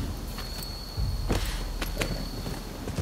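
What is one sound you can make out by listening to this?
Hooves clop on dirt as a horse starts to move.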